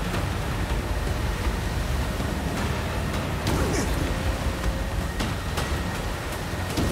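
An engine rumbles steadily as a boat moves through water.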